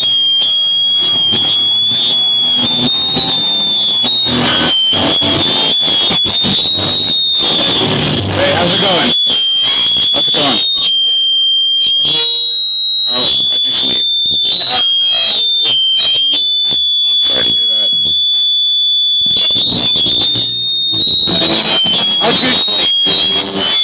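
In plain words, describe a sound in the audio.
An electric guitar plays loud, distorted chords in a large echoing hall.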